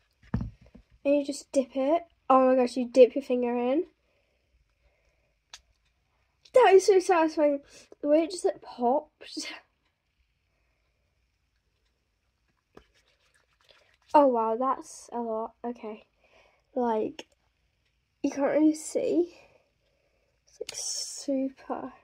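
A young girl talks calmly and close by.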